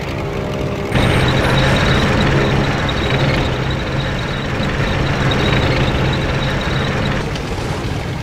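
A propeller plane roars past overhead.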